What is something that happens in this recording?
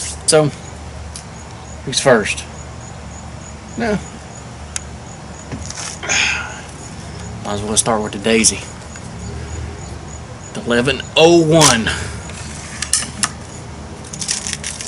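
A middle-aged man talks calmly close by, outdoors.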